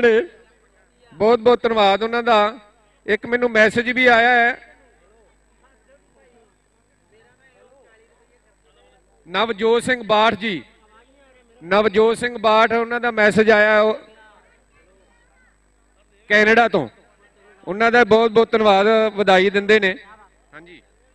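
A man speaks loudly into a microphone in short bursts, heard through a loudspeaker outdoors.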